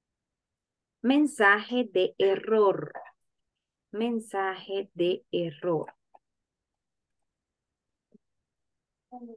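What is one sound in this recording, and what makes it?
A young woman speaks calmly into a close microphone.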